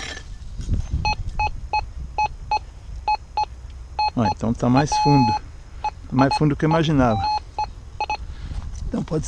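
A metal detector beeps in short, quick pulses.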